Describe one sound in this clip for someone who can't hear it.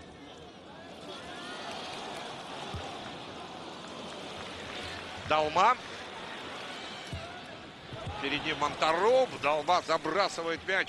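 A stadium crowd roars louder as an attack nears the goal.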